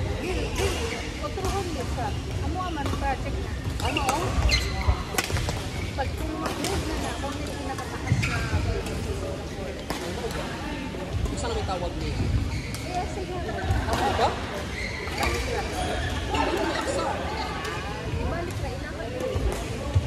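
Voices of players chatter in the background of a large echoing hall.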